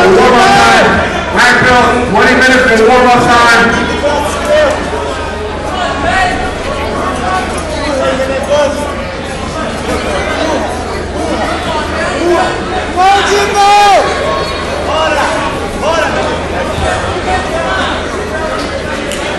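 A crowd of spectators shouts and cheers loudly nearby, in a large echoing hall.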